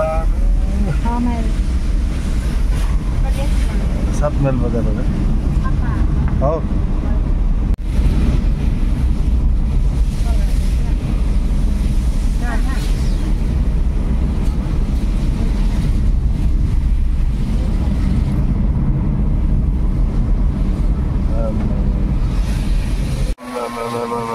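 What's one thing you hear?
A car engine rumbles steadily and low.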